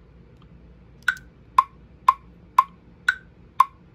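A shaker sample repeats in a steady beat from a speaker.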